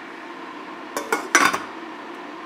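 A glass pot lid rattles as it is set down on a metal pot.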